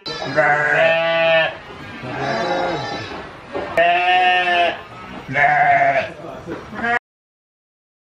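Sheep bleat loudly and repeatedly close by.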